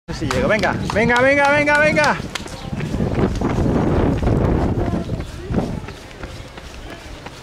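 Footsteps patter quickly on pavement as a person runs.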